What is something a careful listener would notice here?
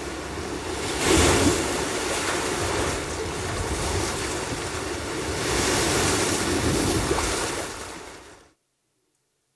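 Surf crashes and rushes over a beach.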